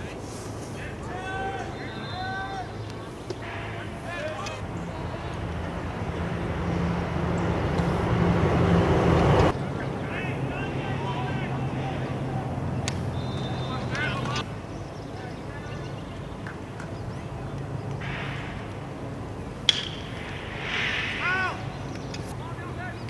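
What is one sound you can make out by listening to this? Young men shout and cheer from a distance outdoors.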